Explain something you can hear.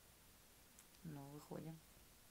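A second young woman answers quietly.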